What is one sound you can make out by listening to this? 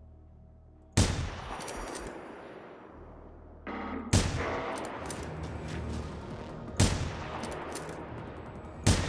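A rifle fires loud shots that echo away outdoors.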